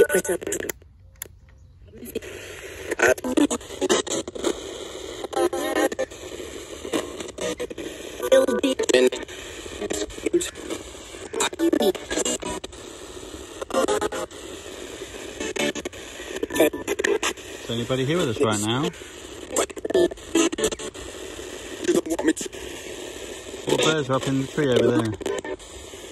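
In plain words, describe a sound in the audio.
A small radio plays through a tinny speaker, briefly cutting out near the start.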